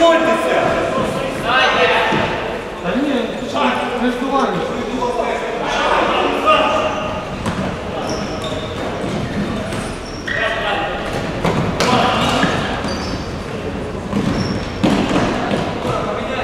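Sneakers squeak on a hard floor.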